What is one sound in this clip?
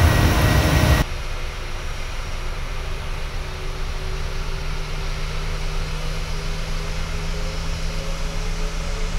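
A jet airliner's engines whine and hum as it rolls along a runway.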